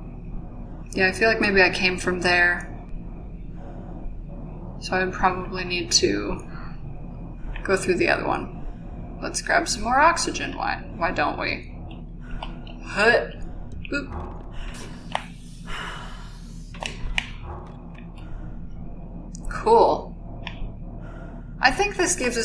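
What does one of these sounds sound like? A young woman talks in bursts, close to a microphone.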